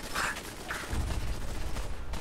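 A heavy explosion booms.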